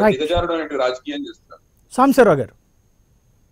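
A man speaks with animation through a microphone.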